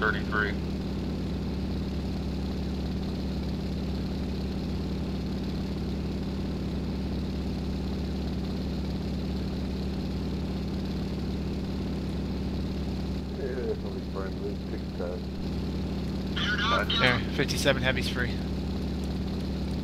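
A propeller engine drones steadily and loudly.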